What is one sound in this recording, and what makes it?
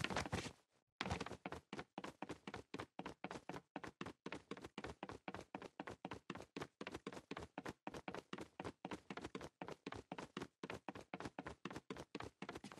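Quick footsteps thud steadily on wooden stairs.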